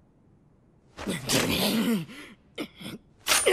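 A man grunts fiercely through clenched teeth.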